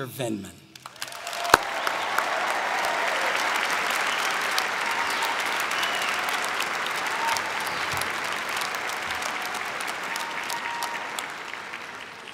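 A large crowd applauds steadily in a large echoing hall.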